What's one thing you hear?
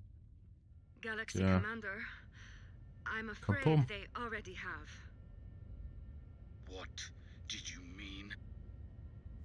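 A man speaks calmly into a close microphone.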